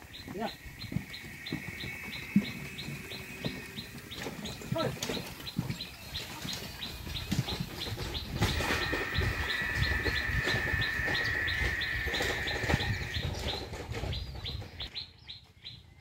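Cart wheels rumble and knock over a dirt road.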